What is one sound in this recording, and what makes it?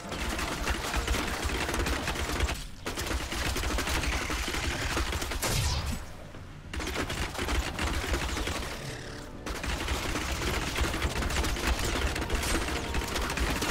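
Fiery blasts whoosh and roar again and again.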